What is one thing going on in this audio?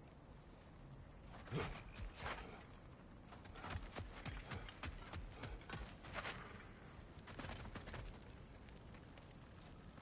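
Heavy footsteps crunch on a dirt path.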